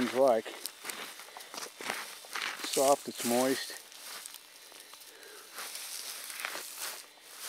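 Footsteps crunch and rustle through dry grass.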